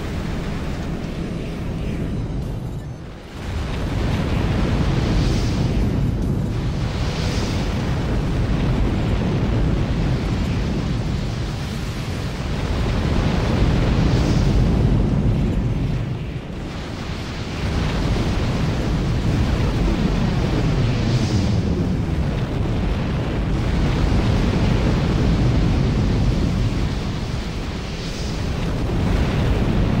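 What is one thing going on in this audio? Thrusters roar steadily.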